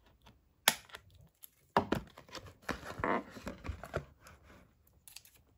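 Cardboard rustles and crinkles as it is handled.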